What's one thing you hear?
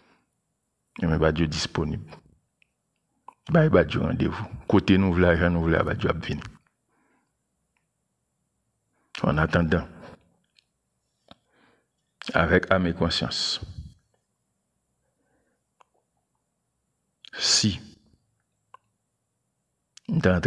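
A man speaks calmly and closely into a microphone, in short bursts with pauses.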